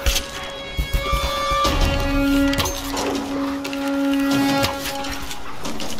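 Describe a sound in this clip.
A bowstring creaks as it is drawn.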